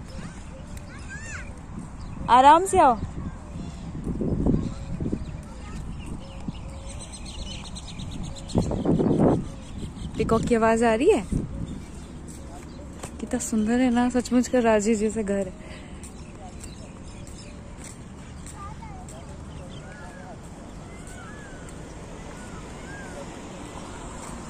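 Birds chirp and call nearby outdoors.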